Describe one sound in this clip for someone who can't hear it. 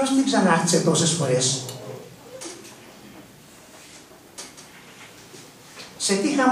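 An elderly man reads aloud calmly into a microphone, heard through loudspeakers in a large echoing hall.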